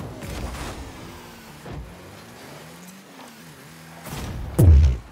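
A car engine hums and revs.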